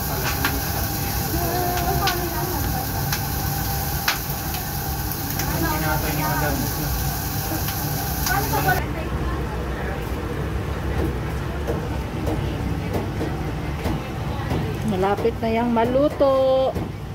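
A wooden spoon scrapes and taps against a pot.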